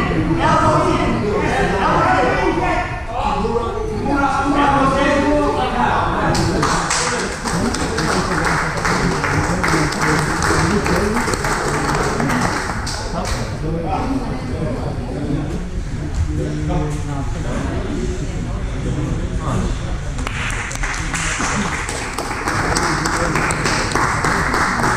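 A man talks loudly in a large, echoing room.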